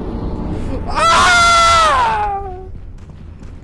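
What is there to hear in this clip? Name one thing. A creature lets out a loud, rising and falling shriek.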